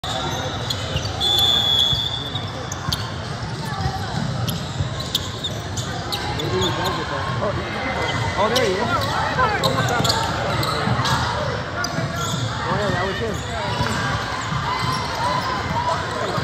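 A basketball thumps on the hardwood floor.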